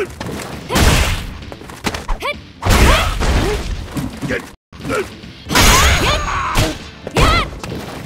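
Heavy punches and kicks land with loud thuds.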